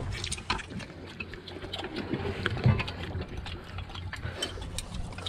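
Chopsticks and spoons clink against bowls.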